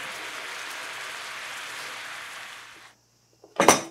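Water bubbles at a rolling boil.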